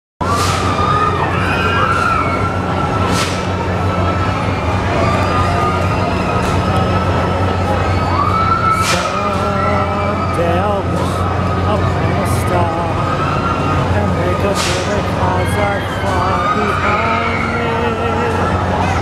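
A fairground swing ride whirs and hums steadily as it spins.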